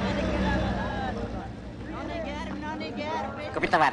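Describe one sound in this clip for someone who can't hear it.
A crowd chatters in a busy street.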